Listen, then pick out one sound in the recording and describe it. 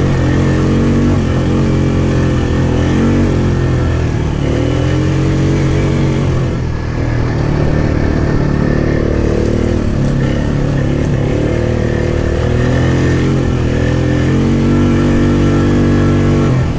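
An all-terrain vehicle engine rumbles close by, rising and falling in pitch.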